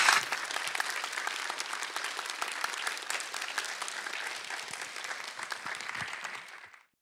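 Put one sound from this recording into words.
An audience applauds loudly in a large hall, then the applause fades.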